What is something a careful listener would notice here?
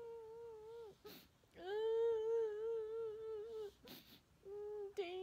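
A young woman breathes in sharply between notes.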